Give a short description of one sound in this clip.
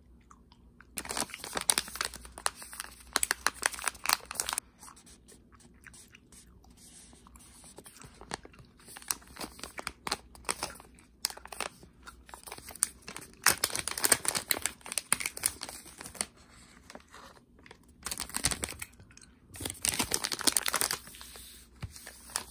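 A plastic snack pouch crinkles and rustles in someone's hands.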